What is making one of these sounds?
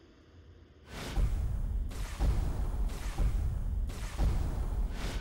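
Spaceship engines roar loudly.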